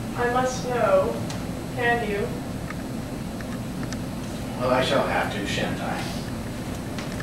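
A woman speaks with feeling in a hall.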